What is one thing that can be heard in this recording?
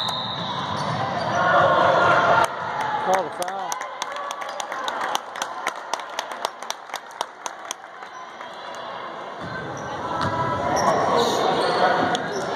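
Spectators cheer in an echoing gym.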